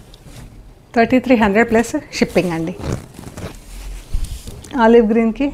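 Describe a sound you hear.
A woman speaks calmly and clearly close by.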